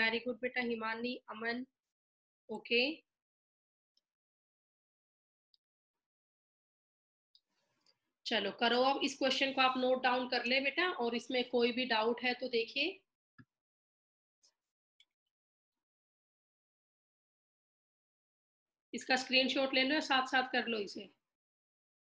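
A woman speaks calmly and clearly into a close microphone, explaining in bursts with pauses.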